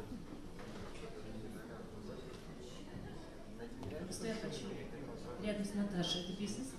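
A band plays soft music.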